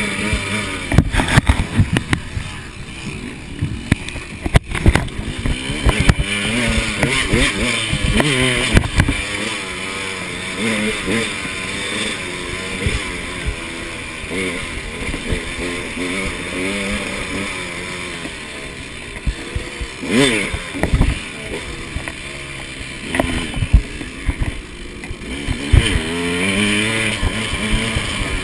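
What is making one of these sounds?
A two-stroke enduro dirt bike revs up and down along a trail.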